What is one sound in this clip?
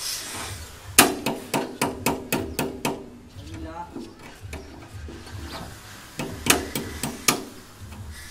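A hammer taps rapidly on a wooden frame.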